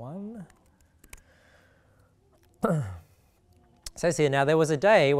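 A young man reads aloud into a microphone in a calm, steady voice.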